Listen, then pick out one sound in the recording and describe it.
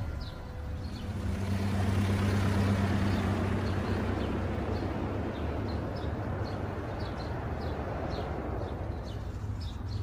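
A car engine hums as a car drives away down a road.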